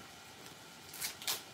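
Paper and fabric rustle as they are handled.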